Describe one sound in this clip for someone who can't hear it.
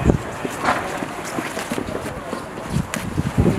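Boots run across tarmac.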